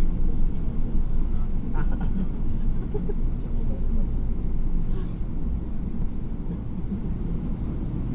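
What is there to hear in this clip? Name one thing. A tram's motor hums low and steady as it rolls along.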